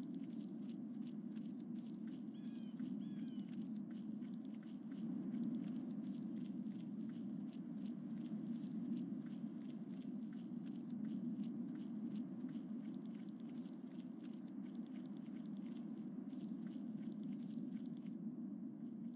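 Footsteps patter quickly and steadily on the ground.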